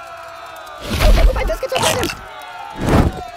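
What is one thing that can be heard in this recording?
A dragon roars loudly.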